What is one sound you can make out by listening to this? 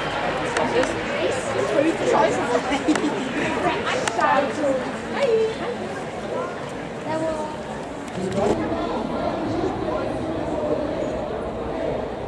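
A crowd of people chatters and calls out loudly close by.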